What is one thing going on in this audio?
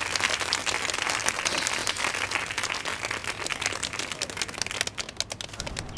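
A young girl claps her hands.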